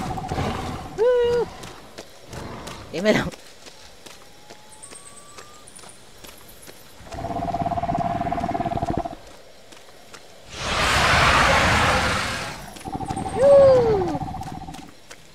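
A small dinosaur lets out shrill squawking calls.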